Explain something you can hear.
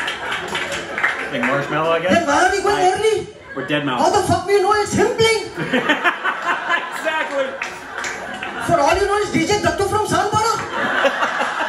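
A man tells jokes with animation through a microphone.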